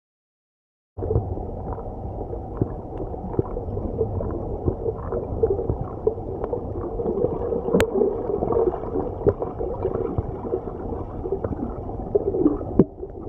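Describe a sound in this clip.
Water rushes and gurgles, muffled as if heard underwater.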